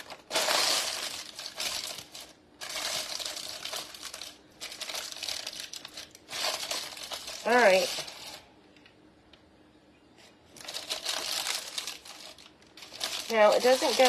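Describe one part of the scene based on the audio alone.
Paper crinkles and rustles as it is pressed into a dish.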